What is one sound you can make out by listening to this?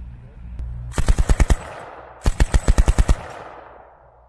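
A machine gun fires short rapid bursts that echo outdoors.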